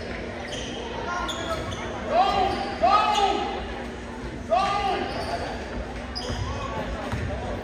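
Sneakers squeak sharply on a hardwood floor in a large echoing hall.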